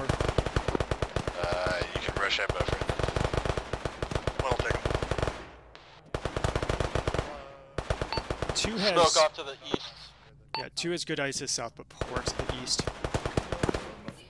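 Rapid gunfire crackles nearby.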